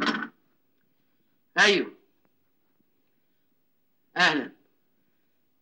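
A man calls out in short, loud bursts close by.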